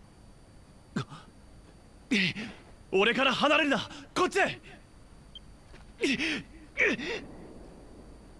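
A young man shouts urgently, heard close up.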